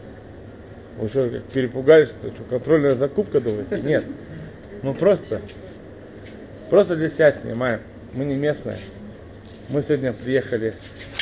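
Men talk loudly with animation close by.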